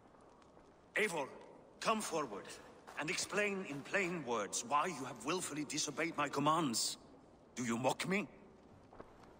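A man speaks with a firm, commanding voice.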